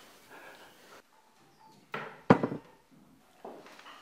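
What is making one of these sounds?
A porcelain lid clinks on a bowl.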